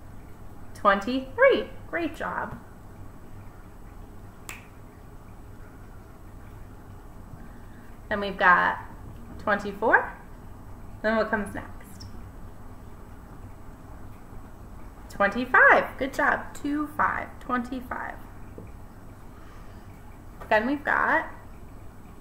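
A woman speaks calmly and clearly, close by, as if teaching.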